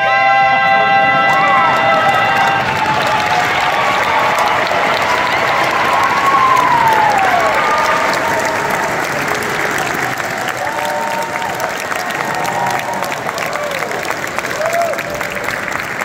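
Audience members whoop and shout with excitement.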